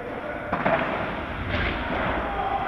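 Padel rackets strike a ball with sharp pops in a large echoing hall.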